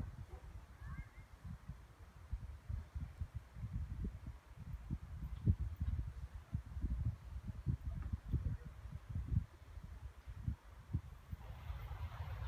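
Wind buffets the microphone outdoors in gusts.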